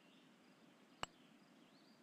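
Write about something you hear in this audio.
A golf putter taps a ball with a sharp click.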